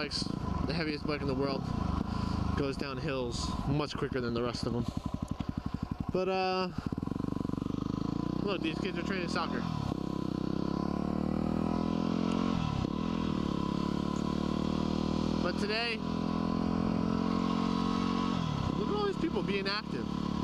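A motorcycle engine revs up and down as the bike speeds along and shifts gears.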